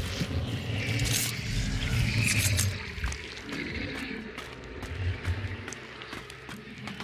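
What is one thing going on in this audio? Footsteps knock and creak on wooden ladder rungs.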